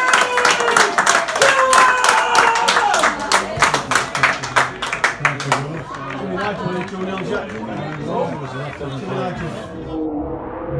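A crowd of men cheers and shouts outdoors.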